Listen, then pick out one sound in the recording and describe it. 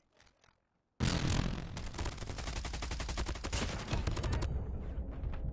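A rifle fires rapid, loud bursts of shots.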